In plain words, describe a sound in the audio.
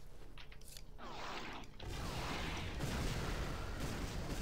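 A rocket whooshes through the air.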